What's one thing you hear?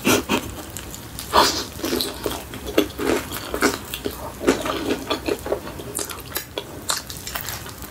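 A young woman chews food wetly close to a microphone.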